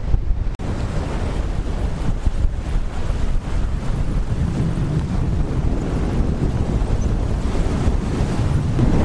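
Wind blusters loudly against the microphone.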